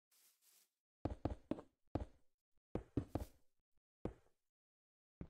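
Stone blocks are placed with short thuds.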